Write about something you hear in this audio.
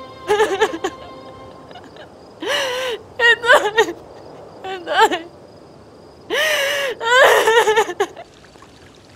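A young woman sobs and cries out loudly in distress.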